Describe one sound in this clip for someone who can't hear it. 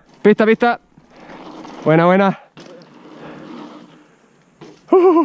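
Bike tyres crunch and skid over loose dirt.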